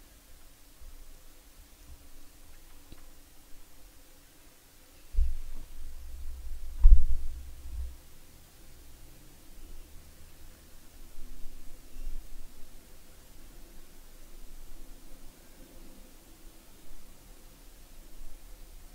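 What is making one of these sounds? A young woman speaks calmly into a microphone, close by.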